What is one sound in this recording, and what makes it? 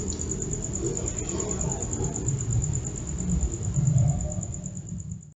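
A vehicle engine rumbles nearby.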